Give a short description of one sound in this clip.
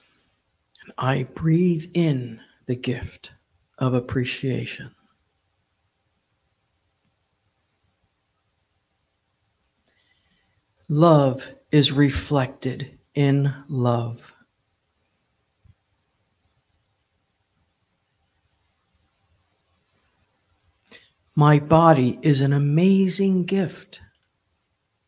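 A woman speaks calmly and slowly into a microphone, with long pauses.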